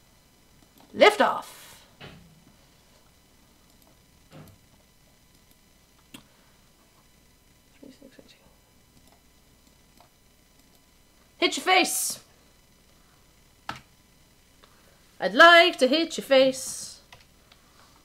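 A young woman speaks casually into a nearby microphone.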